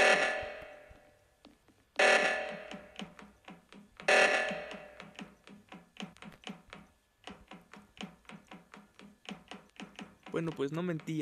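Quick light footsteps patter steadily.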